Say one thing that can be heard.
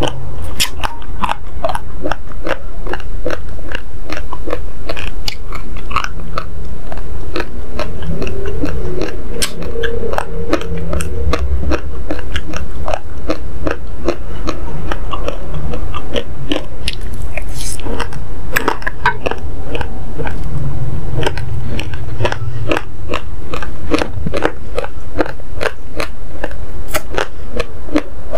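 A young woman crunches hard grains loudly close to a microphone.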